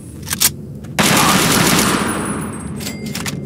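A rifle fires a loud, booming shot.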